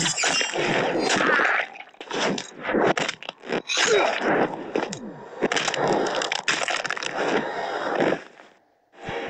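Bones crack with loud crunches.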